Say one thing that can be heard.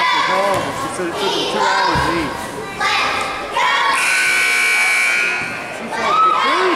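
Girls talk and call out in a large echoing hall.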